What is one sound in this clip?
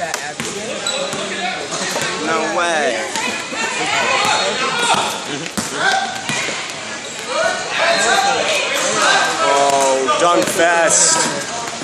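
Spectators cheer and shout loudly in an echoing gym.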